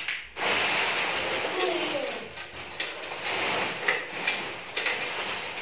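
Plastic sacks rustle and crinkle as they are handled.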